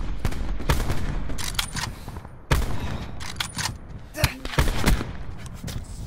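Rifle shots crack and echo in quick bursts.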